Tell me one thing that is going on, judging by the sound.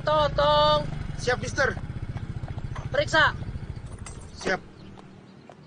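A motorbike engine putters close by, then stops.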